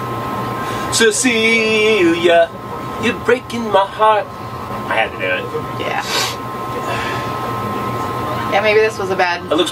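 A middle-aged man talks cheerfully close by.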